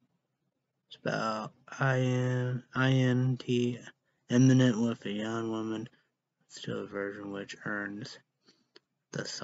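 A young man speaks close to a microphone in a slow, tired voice.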